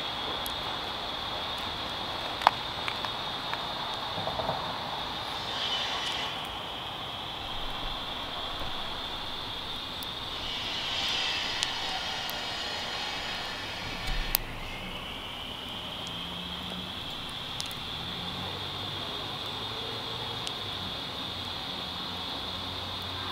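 A small wood fire crackles and pops.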